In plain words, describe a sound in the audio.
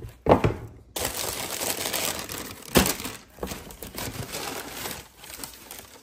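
Tissue paper rustles and crinkles close by.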